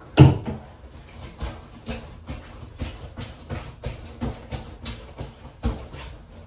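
Feet stamp repeatedly on a pile of clothes on a hard floor.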